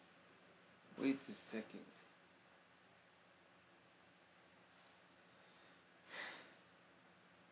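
A man speaks briefly and quietly near a microphone.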